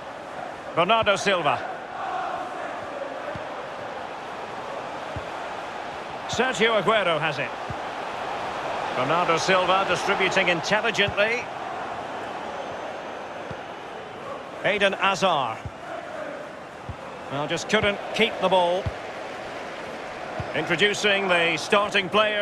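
A large stadium crowd murmurs and cheers steadily throughout.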